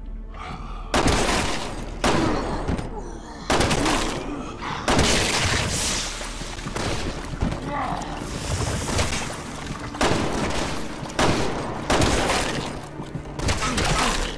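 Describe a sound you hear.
Gunshots ring out in loud, sharp bursts.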